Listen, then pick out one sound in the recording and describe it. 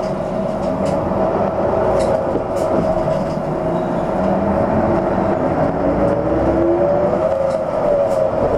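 A vehicle engine hums steadily while driving along a road.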